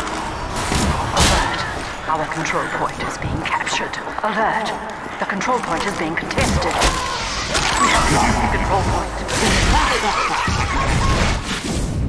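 Bursts and impacts crackle sharply.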